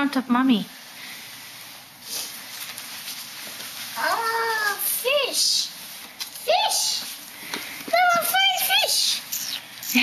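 A young child talks and squeals excitedly nearby.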